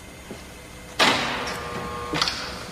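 A glass door clicks and swings open.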